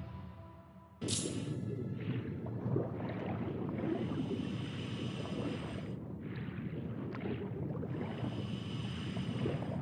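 Air bubbles gurgle and burble from a diver's breathing gear underwater.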